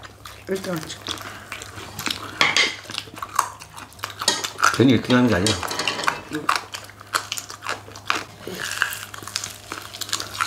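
People crunch loudly on crispy fried chicken close to a microphone.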